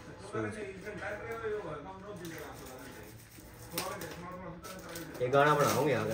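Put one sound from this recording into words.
Plastic packaging crinkles as it is torn open.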